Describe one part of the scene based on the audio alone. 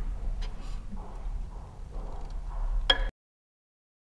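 A violin plays softly.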